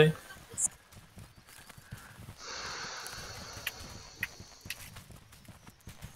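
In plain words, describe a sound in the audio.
Footsteps thud and rustle through tall grass.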